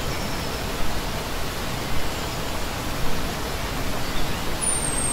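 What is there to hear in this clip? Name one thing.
A shallow stream rushes and splashes steadily over rocks close by.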